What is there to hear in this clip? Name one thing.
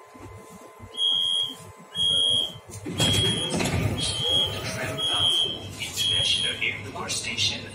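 A door warning chime beeps repeatedly.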